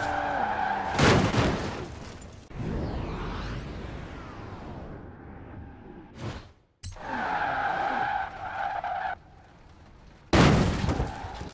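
A car crashes with a loud thud.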